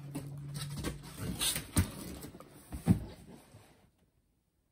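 Cardboard rustles and knocks as a box is handled.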